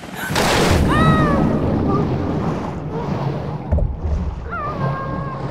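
A young woman gasps and cries out.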